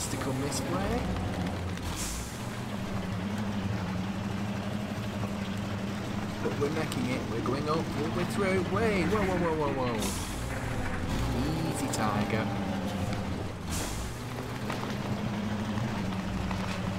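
A truck engine drones steadily at low revs.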